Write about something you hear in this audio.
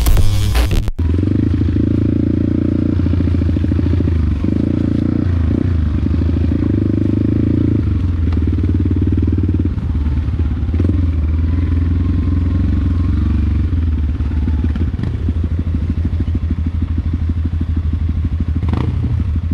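A dirt bike engine runs close by, rising and falling in pitch as the rider throttles.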